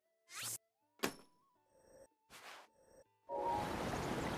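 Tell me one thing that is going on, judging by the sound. Short electronic menu blips and chimes sound.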